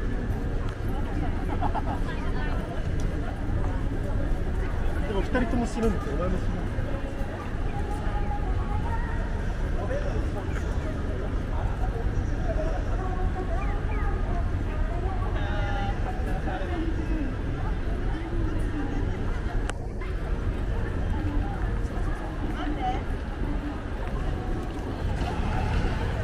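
Footsteps shuffle on pavement.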